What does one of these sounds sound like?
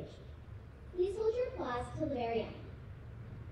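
A second young girl speaks into a microphone over loudspeakers.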